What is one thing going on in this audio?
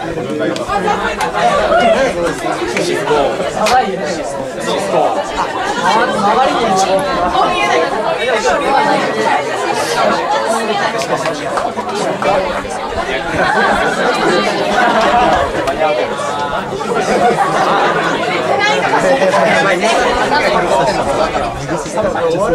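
A young man sings into a microphone over the band.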